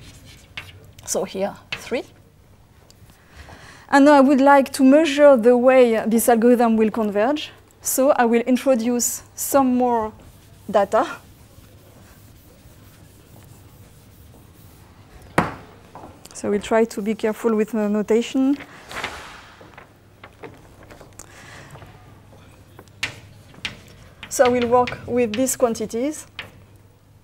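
A woman lectures in a large hall, heard through a microphone.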